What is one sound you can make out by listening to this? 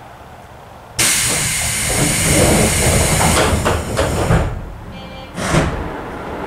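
Train doors slide shut with a thud.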